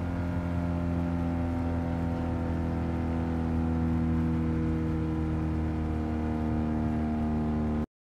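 A small car engine drones steadily at high revs.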